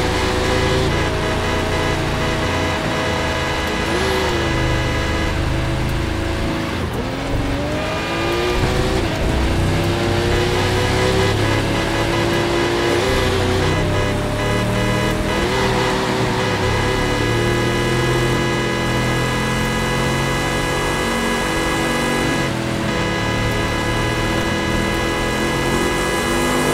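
A sports car engine roars steadily at high speed, its pitch shifting with gear changes.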